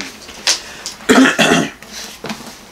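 An elderly man coughs.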